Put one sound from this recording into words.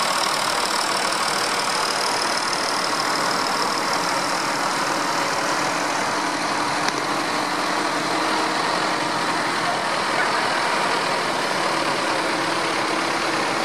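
Tractor engines rumble steadily as tractors drive past one after another.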